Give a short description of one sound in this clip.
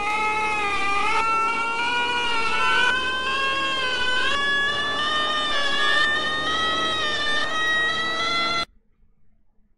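A distorted, high-pitched voice wails steadily in a wavering tone.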